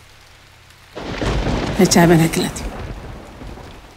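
A middle-aged woman speaks firmly nearby.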